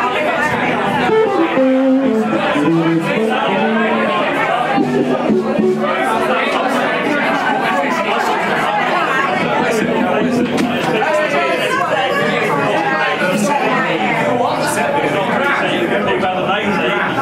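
A noisy crowd chatters loudly all around, close by.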